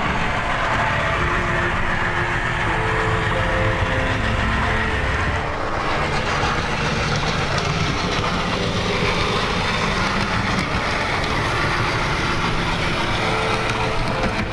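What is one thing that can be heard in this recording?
Model trains hum and rattle along their tracks.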